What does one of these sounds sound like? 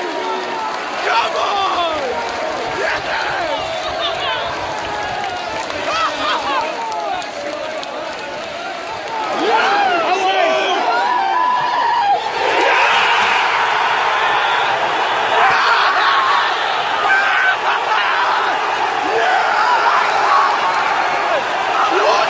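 A large crowd sings and chants loudly in a stadium.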